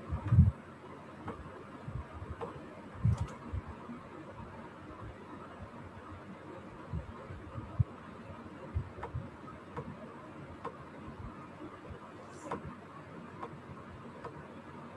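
A young woman speaks calmly and close to a microphone, heard through an online call.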